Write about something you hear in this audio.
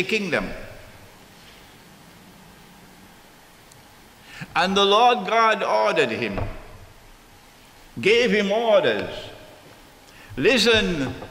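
An elderly man speaks with animation into microphones, in bursts with pauses.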